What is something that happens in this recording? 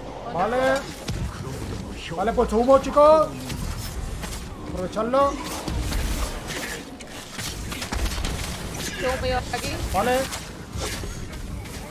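Fiery explosions burst.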